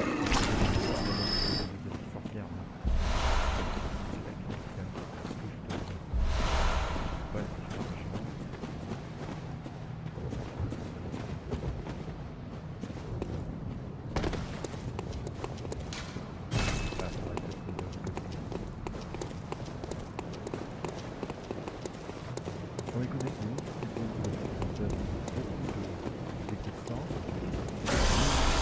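Footsteps tread on stone and gravel.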